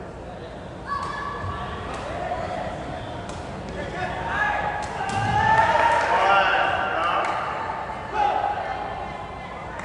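Young men shout to each other on court.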